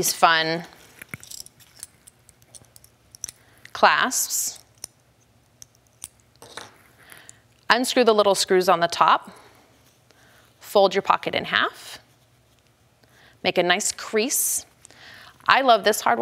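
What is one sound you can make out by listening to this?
A young woman speaks calmly and clearly into a close microphone, pausing between phrases.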